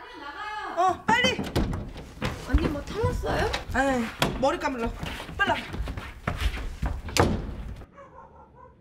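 A woman talks loudly with animation.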